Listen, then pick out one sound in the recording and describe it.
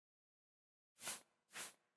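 A game menu gives soft swishing ticks as the selection moves.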